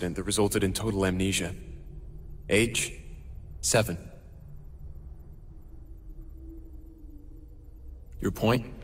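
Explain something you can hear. A young man speaks in a low, calm voice, close by.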